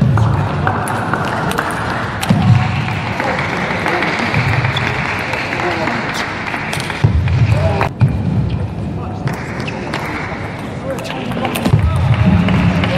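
A table tennis ball clicks sharply off paddles and the table in a fast rally.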